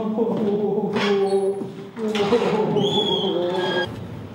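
Footsteps walk across a floor.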